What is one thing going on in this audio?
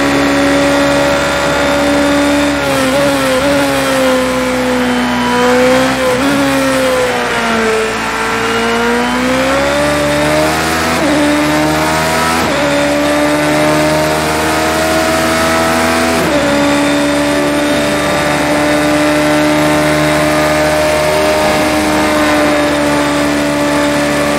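A racing car engine screams loudly, dropping in pitch through corners and rising again on the straights.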